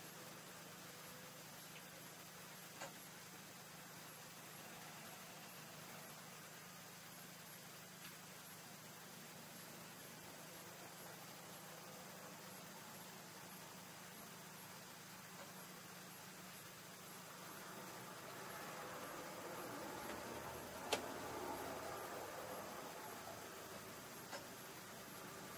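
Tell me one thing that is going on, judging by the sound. A tractor engine idles with a steady low hum, heard from inside the cab.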